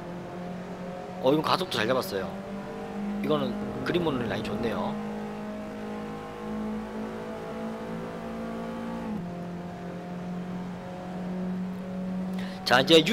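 A car engine hums steadily, its pitch shifting with speed.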